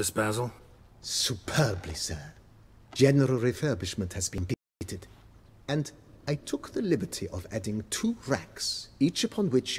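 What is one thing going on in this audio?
A man answers calmly and at length.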